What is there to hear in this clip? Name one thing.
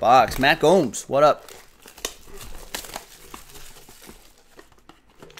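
Plastic wrap crinkles and rustles.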